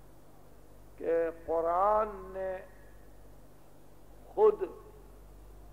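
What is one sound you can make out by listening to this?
A man speaks with feeling into a microphone, in short bursts between pauses.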